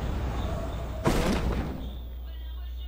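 A parachute snaps open with a sudden whoosh.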